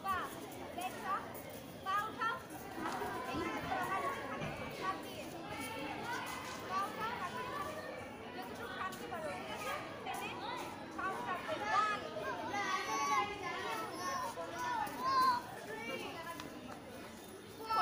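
A crowd of girls chatters and calls out outdoors.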